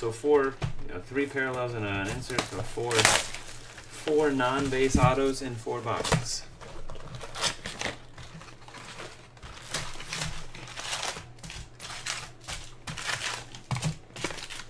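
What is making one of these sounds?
Cardboard boxes and plastic wrap rustle and crinkle as they are handled.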